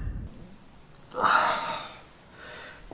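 A young man sighs heavily.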